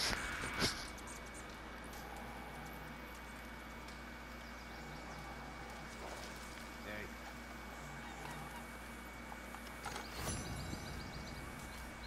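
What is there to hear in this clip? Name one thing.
A small campfire crackles softly.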